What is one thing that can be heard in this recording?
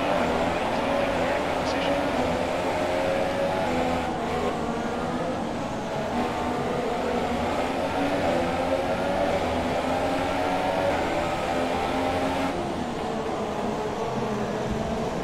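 A racing car engine screams at high revs, rising and falling as it shifts gears.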